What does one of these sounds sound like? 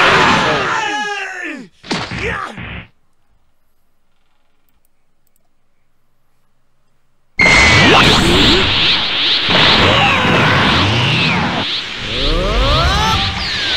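Cartoon fighting game effects whoosh, boom and crackle with energy blasts.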